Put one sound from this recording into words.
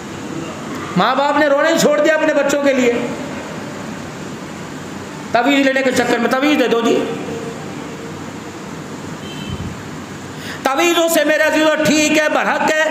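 A middle-aged man speaks with emphasis into a headset microphone, in bursts with pauses.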